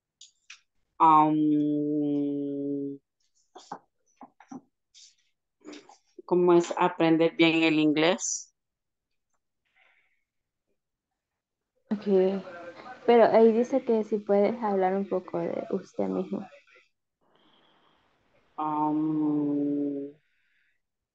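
A woman speaks slowly and clearly over an online call, with pauses.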